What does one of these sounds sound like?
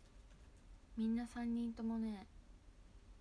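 A young woman speaks briefly and softly close to a microphone.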